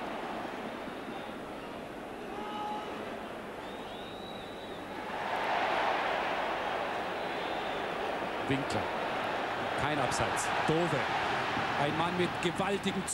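A large stadium crowd roars steadily, swelling louder after a foul.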